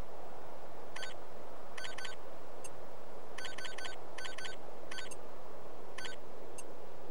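Short electronic beeps chirp in quick bursts.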